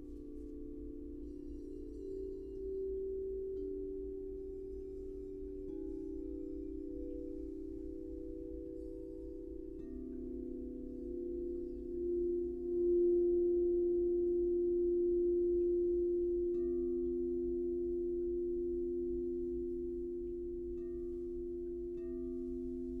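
Crystal singing bowls ring with long, overlapping, humming tones that swell and fade.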